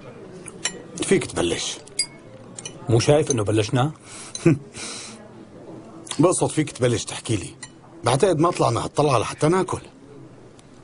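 A middle-aged man speaks calmly and gruffly nearby.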